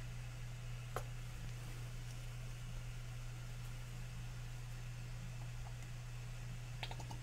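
Plastic paint bottles clack lightly as they are picked up and set down.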